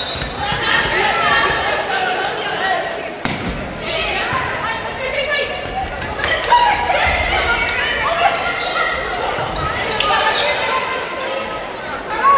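A crowd cheers and chatters in a large echoing gym.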